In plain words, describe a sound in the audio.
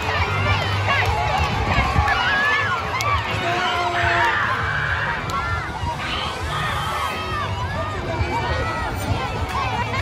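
A large crowd of children and adults cheers and shouts outdoors.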